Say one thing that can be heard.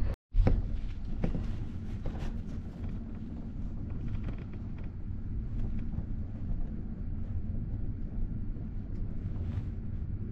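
A freight train rumbles steadily along the tracks.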